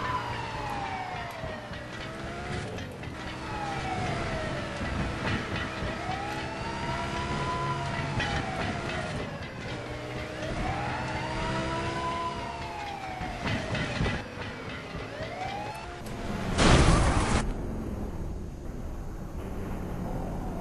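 A car engine roars at speed.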